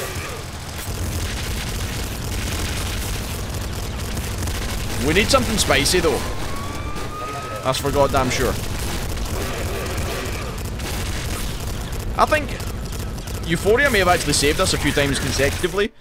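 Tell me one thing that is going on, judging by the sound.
Video game explosions boom.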